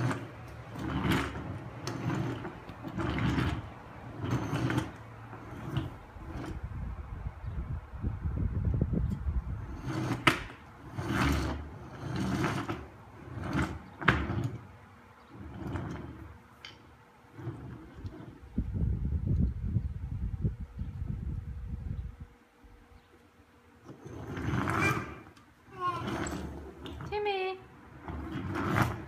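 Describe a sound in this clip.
A wooden toy truck knocks and rolls on a wooden floor.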